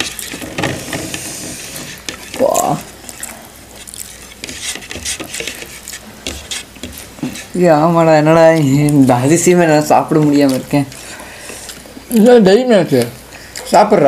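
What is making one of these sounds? Food crunches and rustles as young men eat with their hands.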